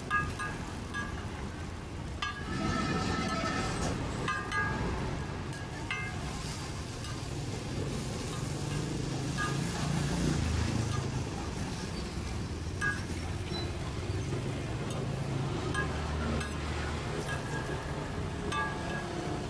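Flatbreads sizzle on a hot griddle.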